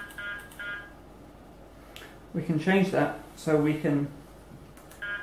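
An electronic device gives short, repeated beeps.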